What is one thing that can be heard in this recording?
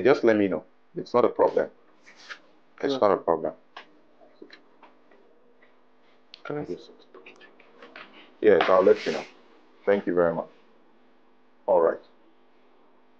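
A man speaks firmly into a phone, close by.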